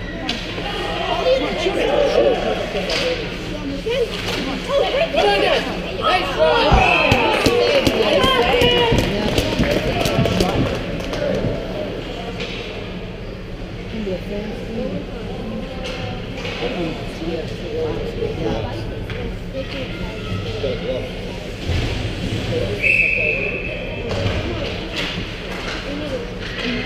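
Children shout to each other across a large echoing rink.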